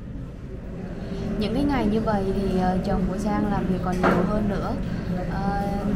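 A young woman talks calmly, close to a microphone.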